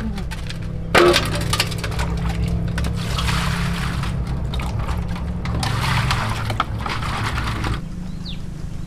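Water splashes and pours from a scoop.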